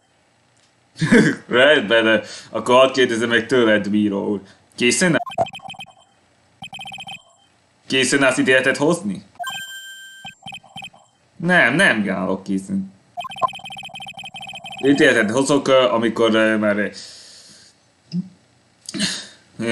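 A young man talks with animation close to a microphone, reading out lines.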